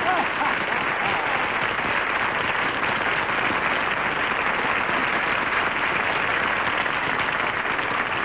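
A crowd applauds loudly and steadily.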